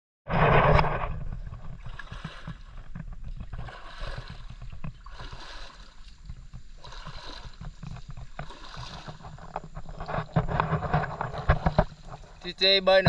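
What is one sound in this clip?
A dog splashes as it paddles through shallow water.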